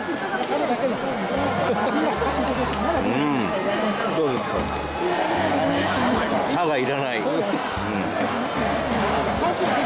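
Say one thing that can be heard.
A large crowd murmurs and chatters all around.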